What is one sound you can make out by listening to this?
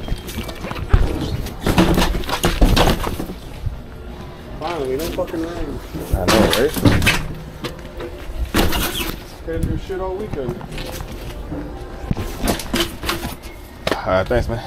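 Hands rub and thump against a rubber tyre.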